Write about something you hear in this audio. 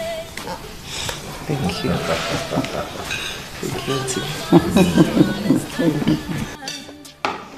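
A young woman laughs softly nearby.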